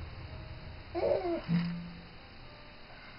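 A baby whimpers softly close by.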